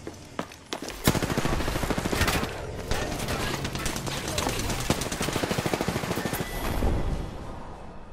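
Electric energy crackles and buzzes loudly in rapid bursts.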